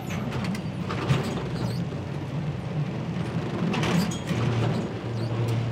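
A boat's engine idles nearby with a low, steady rumble.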